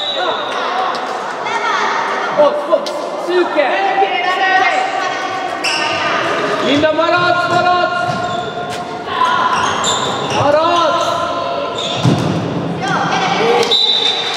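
Young girls shout to each other across an echoing hall.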